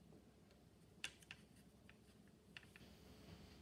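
A paintbrush taps and scrubs softly in a paint tray.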